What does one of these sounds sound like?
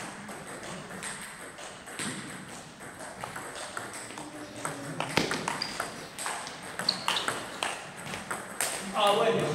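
A table tennis ball clicks back and forth off bats and a table in an echoing hall.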